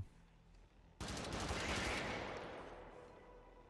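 Gunfire bursts in a rapid volley.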